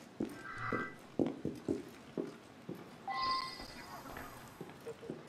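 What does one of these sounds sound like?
Footsteps tap on a hard floor at a quick walking pace.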